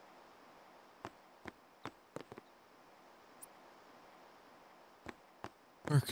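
Footsteps tap on a stone floor.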